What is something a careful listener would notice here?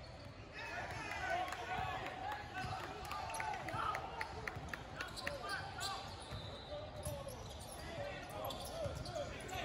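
A basketball bounces with dull thumps.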